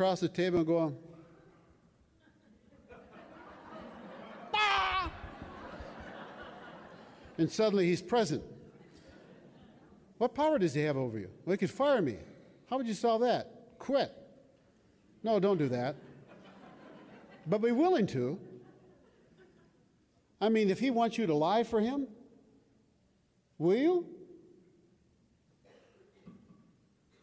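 An elderly man speaks calmly through a microphone and loudspeakers in a large echoing hall.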